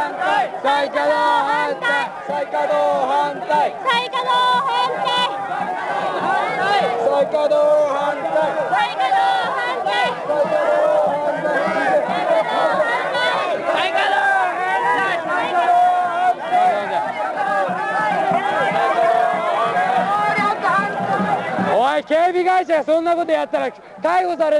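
A large crowd of men and women shouts and chants loudly outdoors.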